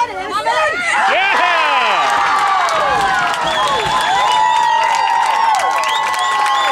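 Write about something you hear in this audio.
A crowd of spectators cheers and screams loudly nearby.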